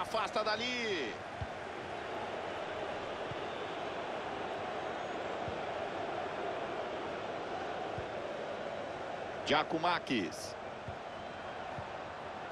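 A large crowd murmurs and roars steadily in a big stadium.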